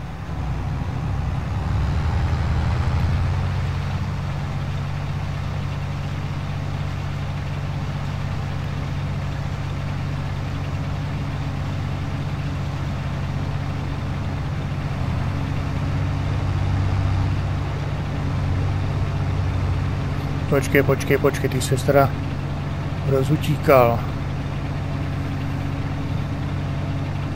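A combine harvester engine drones steadily with a deep hum.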